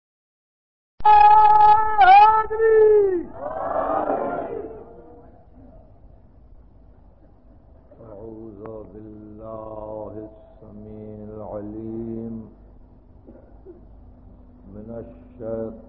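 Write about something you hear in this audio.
An elderly man speaks with animation, heard through an old, crackly recording.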